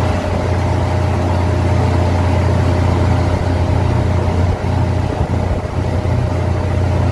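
A ship's hull churns through the sea with rushing water.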